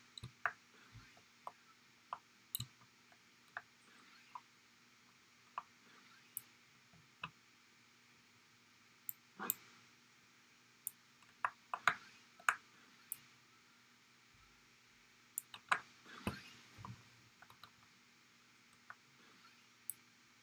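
Grappling hooks fire and latch with sharp clicks and whooshes.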